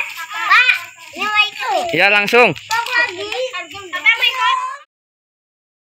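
Children shout and chatter excitedly nearby.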